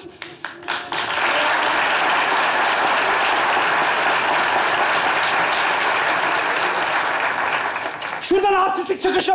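A theatre audience laughs and applauds loudly.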